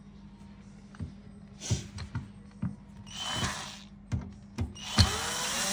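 Plastic clicks and knocks as a tool is positioned against a pipe.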